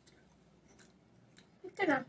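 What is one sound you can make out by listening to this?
A young woman bites into juicy mango.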